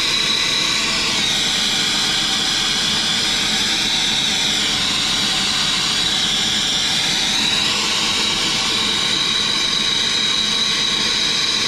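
A gas torch roars steadily, close by.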